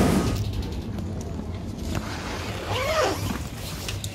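A suitcase zipper is pulled open.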